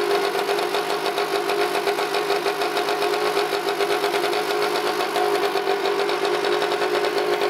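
A small engine idles with a steady, rapid putter close by.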